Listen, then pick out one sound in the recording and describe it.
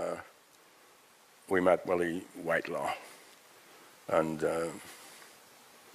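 An elderly man speaks slowly and thoughtfully into a microphone, with pauses.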